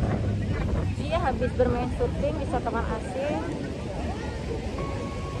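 Young women chat nearby outdoors.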